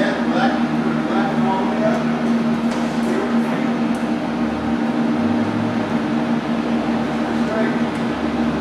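Computer equipment hums steadily.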